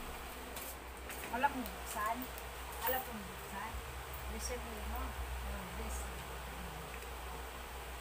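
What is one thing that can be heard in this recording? A woman talks calmly at close range.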